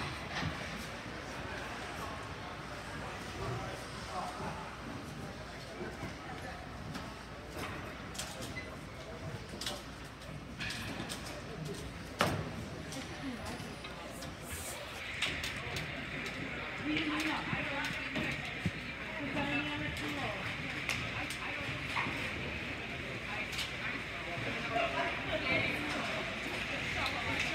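Voices chatter in a large echoing hall.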